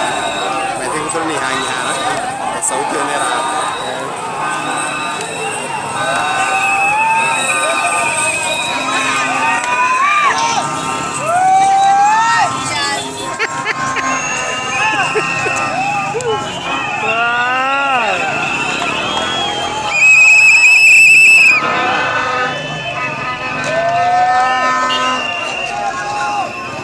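A large crowd of men shouts and chants outdoors.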